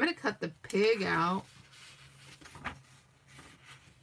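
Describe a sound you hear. A book page rustles as it is turned.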